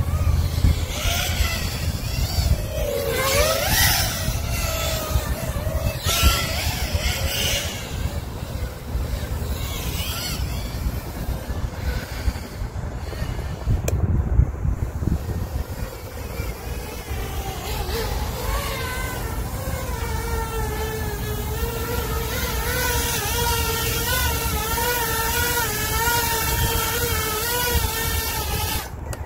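A small drone's motors whine, rising and falling in pitch as it flies.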